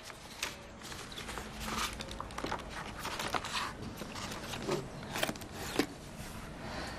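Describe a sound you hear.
Papers rustle and shuffle as they are handled.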